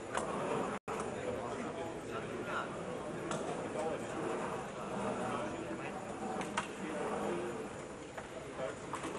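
A crowd of spectators murmurs and chatters indoors.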